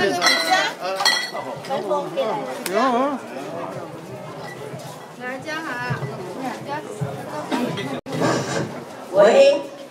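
A crowd of men and women chatter close by.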